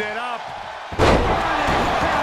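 A wrestler slams onto a wrestling mat with a heavy thud.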